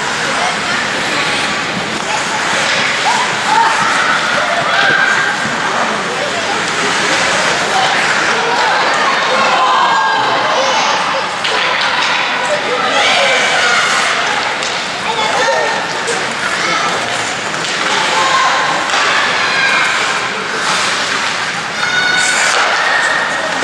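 Skates scrape and swish across the ice.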